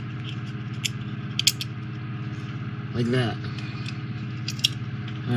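Small plastic model parts click and tap together in hands.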